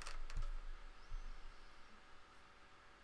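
A man speaks briefly and calmly close to a microphone.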